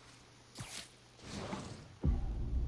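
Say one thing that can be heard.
A rope whips swiftly through the air.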